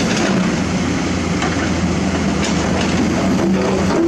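Rocks and dirt tumble from an excavator bucket into a dump truck bed.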